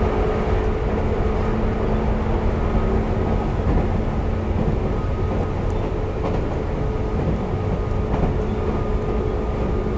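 A train rumbles along the tracks with a steady motor hum.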